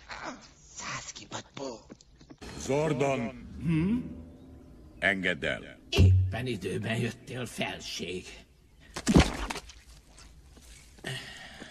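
A man answers in a nervous, fussy voice.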